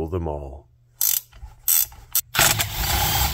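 A ratchet wrench clicks while turning a bolt.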